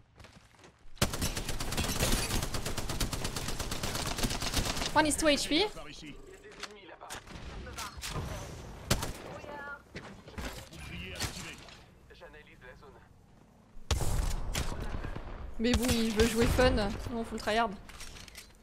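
Rapid gunfire bursts out in quick volleys.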